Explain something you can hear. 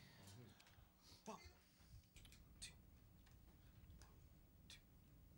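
A drummer taps drums and cymbals softly.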